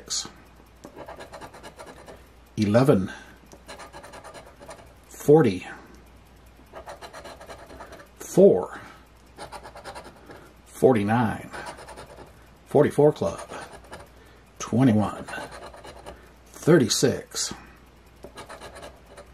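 A coin scrapes rapidly across stiff card in short, repeated bursts.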